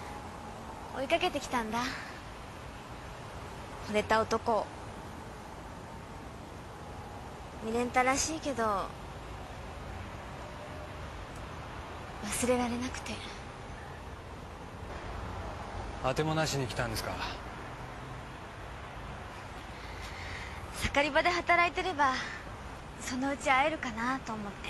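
A young woman speaks calmly and playfully nearby.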